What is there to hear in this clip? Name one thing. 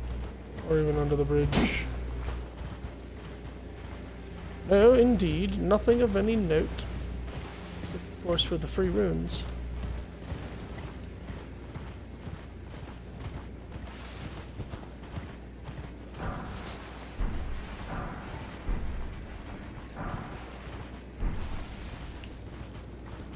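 A horse's hooves thud quickly on snowy ground.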